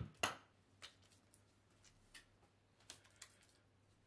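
A trowel scrapes mortar onto stone.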